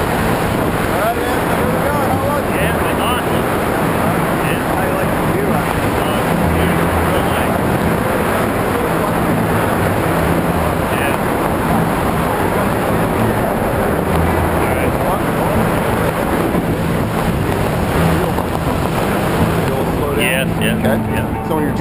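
A man talks loudly over the wind.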